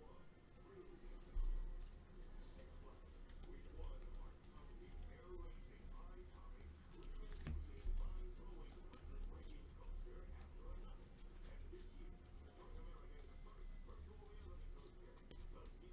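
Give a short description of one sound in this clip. Trading cards shuffle and flick against each other in hand.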